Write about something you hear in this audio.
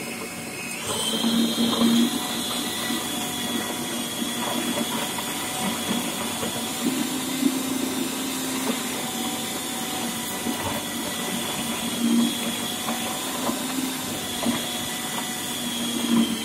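A food processor blade chops and grinds food.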